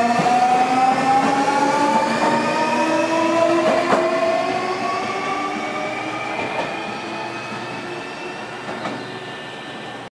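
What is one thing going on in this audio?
An electric train hums at a platform with a slowly rising whine that fades.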